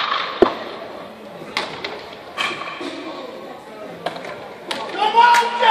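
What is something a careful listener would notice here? A baseball smacks into a leather glove in a large echoing hall.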